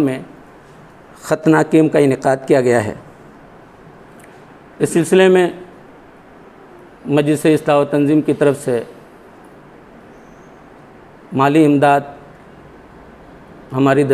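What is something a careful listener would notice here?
A man speaks calmly into a nearby microphone, in short phrases with pauses.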